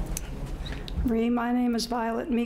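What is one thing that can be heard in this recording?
An elderly woman speaks warmly into a microphone.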